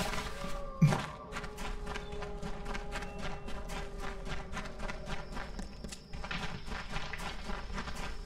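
Footsteps run quickly over dry ground.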